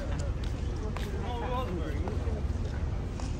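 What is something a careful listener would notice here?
An older woman talks briefly nearby while walking past.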